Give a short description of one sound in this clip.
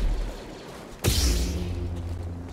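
A lightsaber ignites with a sudden hiss.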